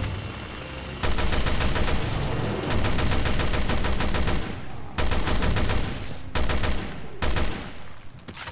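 A gun fires in rapid bursts, loud and close.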